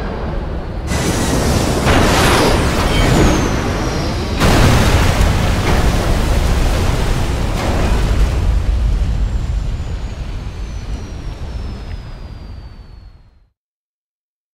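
Flames roar loudly with a deep rumble.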